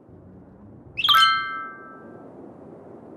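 A short bright chime rings once and fades.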